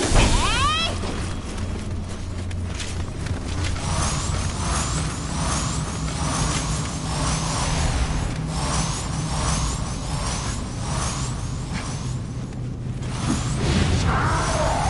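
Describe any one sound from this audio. Footsteps run quickly over rocky ground.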